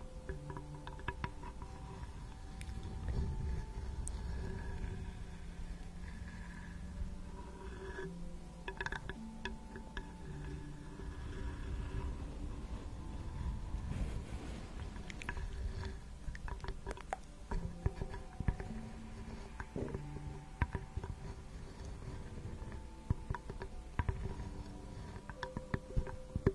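Fingernails tap and scratch on a wooden spoon close to a microphone.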